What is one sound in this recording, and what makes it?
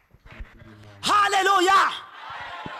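A second woman shouts with animation into a microphone.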